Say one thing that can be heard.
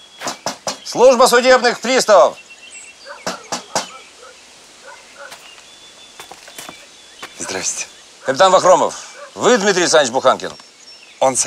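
A middle-aged man speaks firmly close by.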